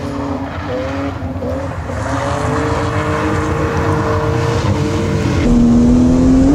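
A car engine revs and whines in the distance outdoors.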